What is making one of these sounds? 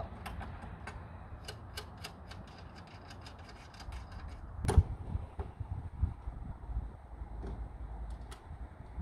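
A ratchet wrench clicks in quick bursts.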